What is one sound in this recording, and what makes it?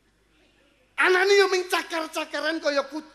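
A middle-aged man preaches with animation through a microphone.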